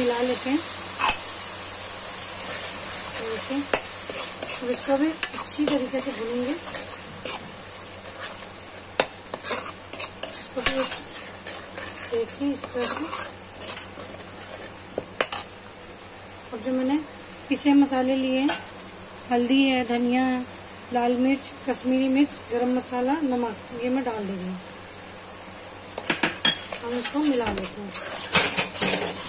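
A metal spoon scrapes and taps against a metal pan.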